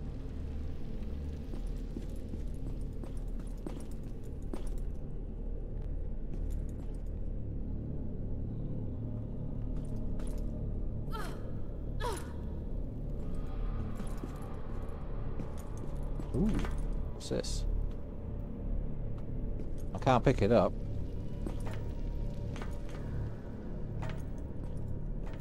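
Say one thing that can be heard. Footsteps patter on stone.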